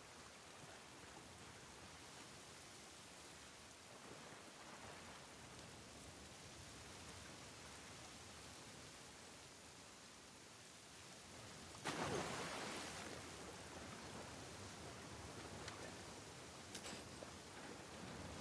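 A river rushes and churns nearby.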